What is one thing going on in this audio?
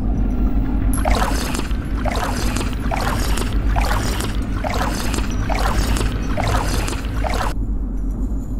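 Water splashes and gurgles in rhythmic bursts.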